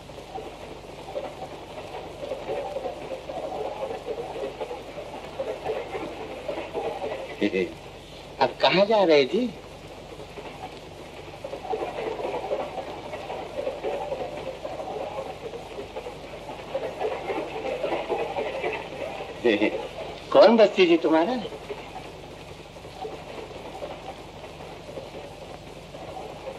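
A man speaks with animation, heard through an old film soundtrack.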